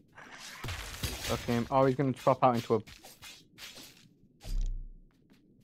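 Quick blows and crackling magic bursts clash in a fight.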